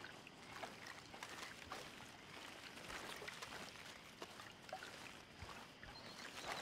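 Leafy plants rustle as someone walks through them.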